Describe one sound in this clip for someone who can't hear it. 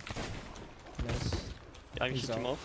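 A ship's cannon fires with a deep boom.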